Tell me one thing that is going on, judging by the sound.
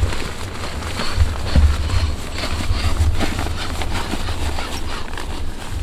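Fabric rustles as a sleeping pad is handled and pressed down.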